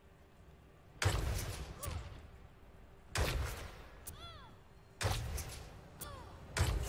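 An energy gun fires in loud, crackling bursts.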